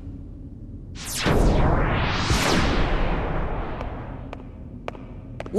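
A dark portal opens with a swelling whoosh that slowly fades.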